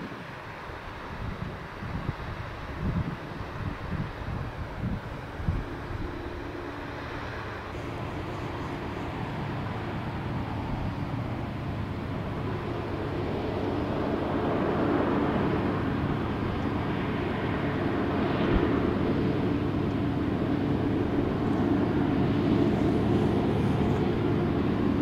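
A long freight train rumbles in the distance.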